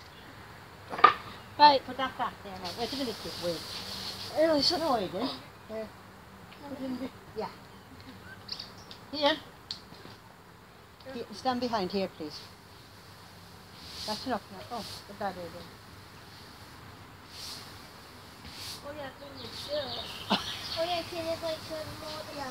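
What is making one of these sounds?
Young boys talk and call out to each other nearby, outdoors.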